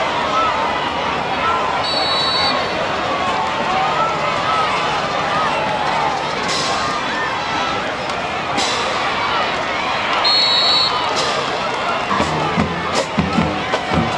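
A crowd cheers and chatters from the stands outdoors.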